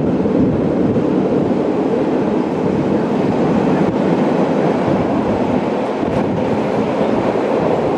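Train wheels clatter and squeal on a curve.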